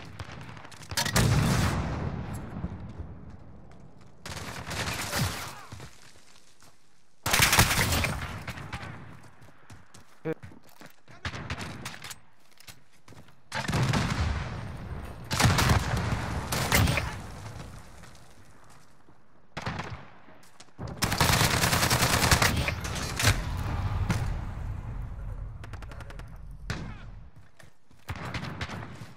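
Rapid gunshots crack in loud bursts.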